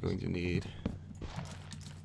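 A shovel digs into dirt with soft crunching thuds.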